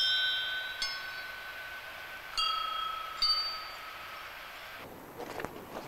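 Small bells ring with clear, high tones.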